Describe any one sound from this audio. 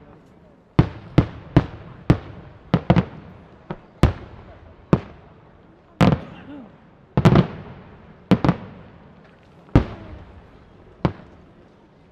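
Fireworks crackle after the bursts.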